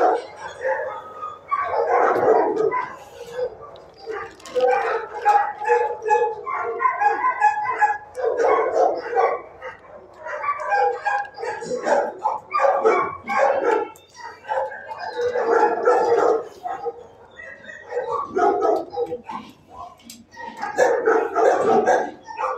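A dog sniffs close by.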